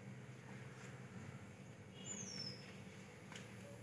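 Leaves rustle as cows graze in thick bushes.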